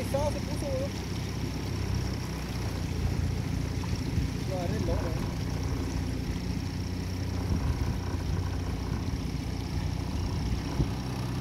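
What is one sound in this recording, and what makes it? A boat's motor hums steadily.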